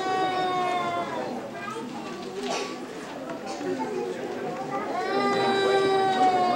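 Young children sing together.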